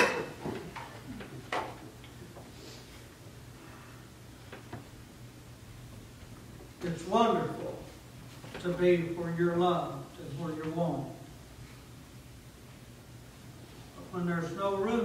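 A middle-aged man speaks calmly through a microphone in a room with a slight echo, pausing between phrases.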